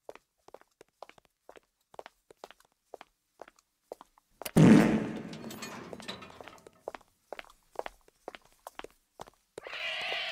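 Quick footsteps tap on a wooden floor.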